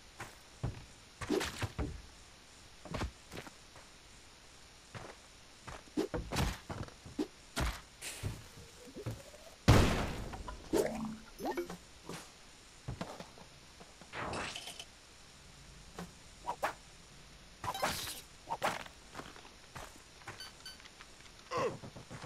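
Short, sharp video game sound effects pop and clatter now and then.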